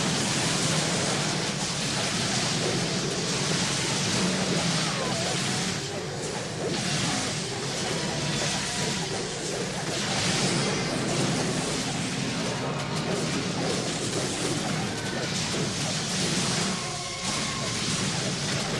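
Spells crackle and blast in a game battle.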